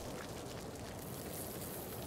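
A lawn sprinkler sprays water with a soft hiss.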